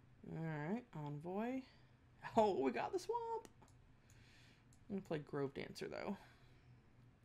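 A young woman talks with animation through a microphone, close by.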